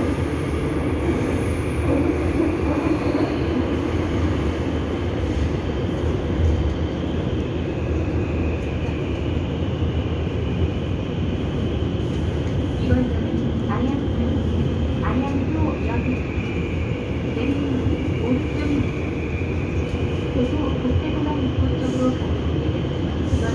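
A subway train rumbles steadily along the track.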